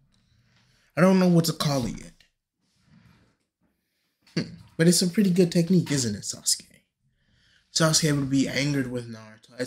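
A man speaks with animation, close and clear.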